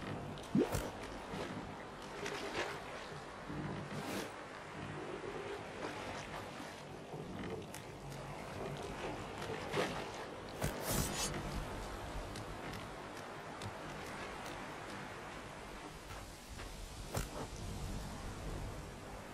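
Waves lap gently against a shore.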